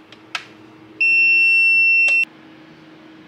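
A device beeps with a steady high tone.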